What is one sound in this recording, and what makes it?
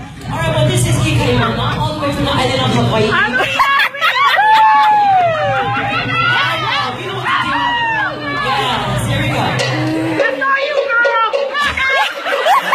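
A crowd of young girls cheers and squeals in an echoing hall.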